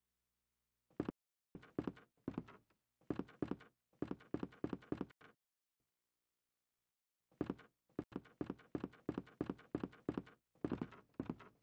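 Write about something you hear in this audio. Footsteps thud on a wooden floor at an even pace.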